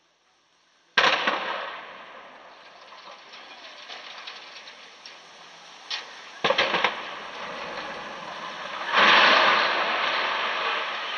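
Wind gusts rustle through leafy trees outdoors.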